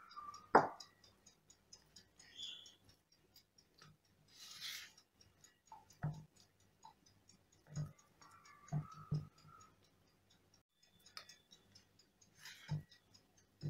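A metal pan knocks against a wooden board.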